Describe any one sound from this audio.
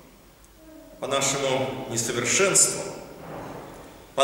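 An elderly man speaks calmly and close by in an echoing room.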